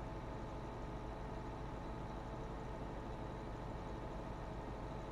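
A mower whirs as it cuts grass.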